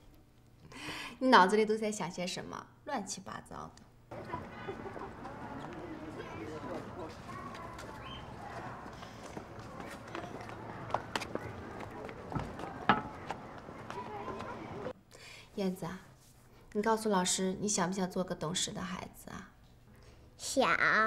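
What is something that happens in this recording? A young woman speaks warmly and close by.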